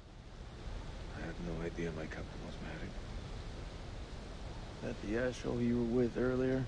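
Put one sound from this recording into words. A man answers in a low voice.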